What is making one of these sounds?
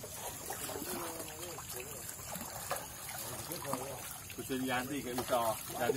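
Water splashes as a man wades through a stream.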